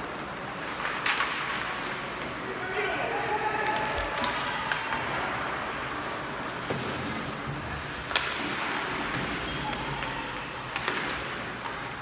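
Hockey sticks clack against the puck and the ice.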